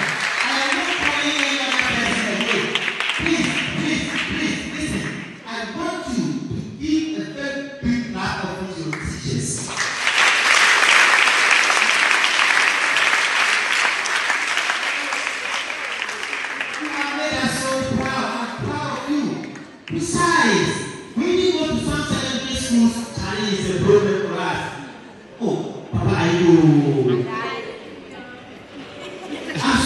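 A young man speaks with animation through a microphone in an echoing hall.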